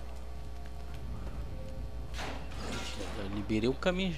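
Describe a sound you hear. A heavy metal door swings open.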